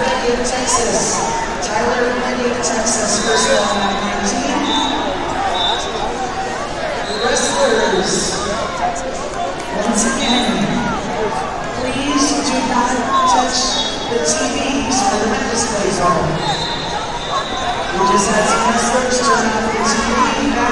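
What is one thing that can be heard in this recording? A large crowd murmurs and talks in a big echoing hall.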